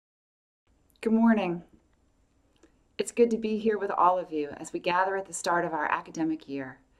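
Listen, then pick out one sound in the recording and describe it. A middle-aged woman speaks calmly and warmly into a microphone, close by.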